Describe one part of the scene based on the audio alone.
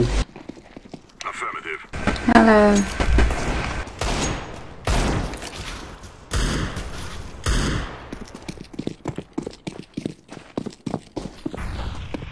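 Footsteps crunch quickly on gritty ground.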